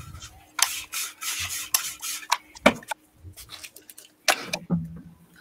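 A thin plastic sheet rustles and crinkles against paper.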